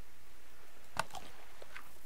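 A game menu gives a short click as an item is used.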